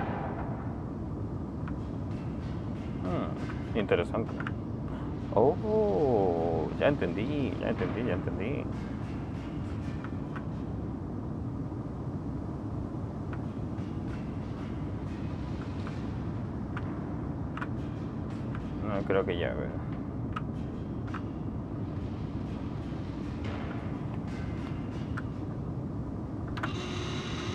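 Light footsteps tap on a metal walkway.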